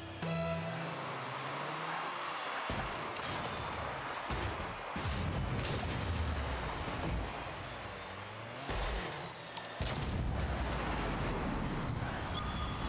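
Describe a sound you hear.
A racing car's engine roars with a rushing boost.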